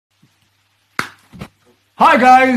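A man claps his hands.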